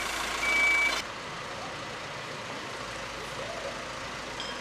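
A metal tool scrapes against pavement stones.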